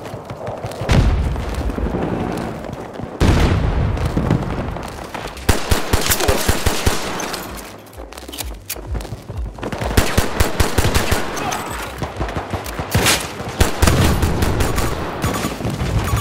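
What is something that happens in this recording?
Explosions boom and debris rattles.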